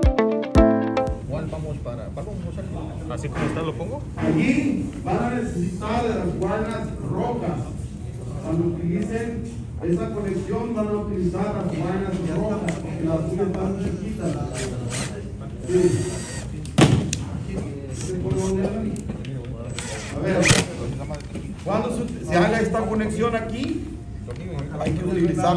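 A man talks calmly nearby.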